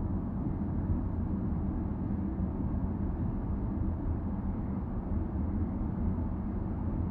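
A car's engine hums steadily as it drives along a road.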